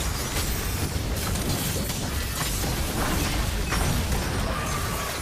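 Magic attacks whoosh and strike.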